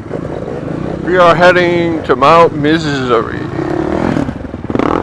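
Dirt bike engines rev sharply up and down nearby.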